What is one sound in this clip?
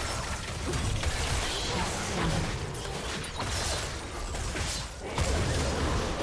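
Spell effects and hits from a video game battle crackle and boom.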